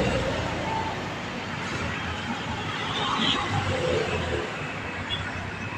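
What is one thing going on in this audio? A motor scooter drives past with a buzzing engine.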